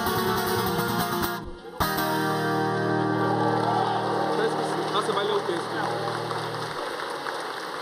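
A guitar plays a final strummed chord that rings out through loudspeakers.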